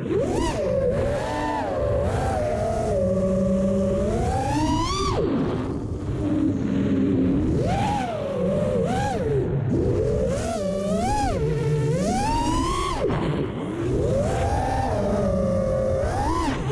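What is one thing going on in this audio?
Drone motors whine, rising and falling sharply in pitch as the drone speeds up and slows down.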